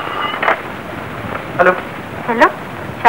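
A man talks on the telephone.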